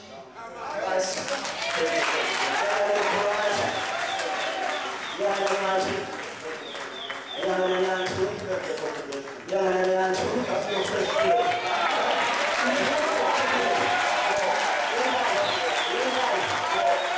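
A crowd of people sing and pray aloud together.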